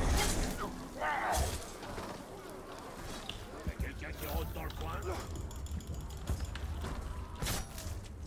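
Blows and clashes of a fight ring out from a game.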